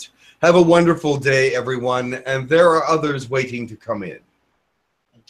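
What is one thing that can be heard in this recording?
A middle-aged man speaks calmly and closely through an online call microphone.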